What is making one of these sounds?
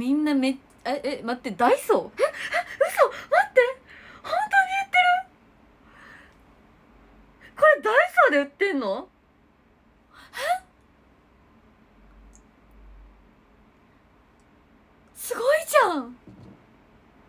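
A young woman squeals and laughs behind her hand.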